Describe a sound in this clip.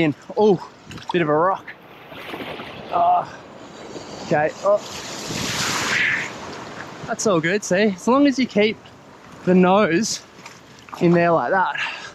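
Waves wash softly against the shore.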